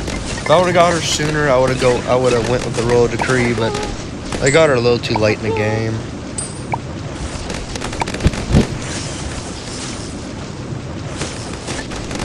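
Cartoon game effects pop and crackle rapidly.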